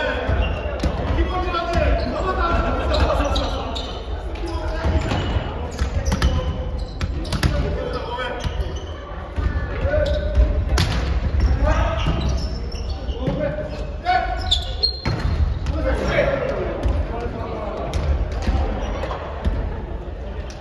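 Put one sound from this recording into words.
Hands slap a volleyball.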